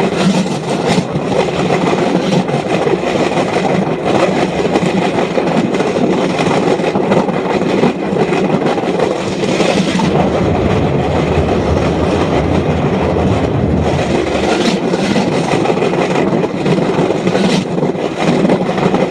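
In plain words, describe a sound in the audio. Metal wheels rattle and clatter over rails.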